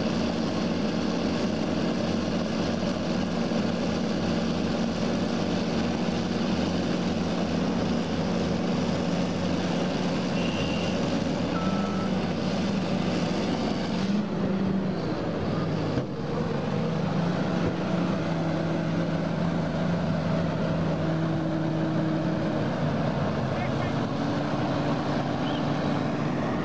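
Bulldozer tracks clank and squeal as they grind through mud.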